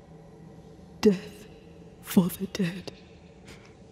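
A woman answers quietly in a low voice, close by.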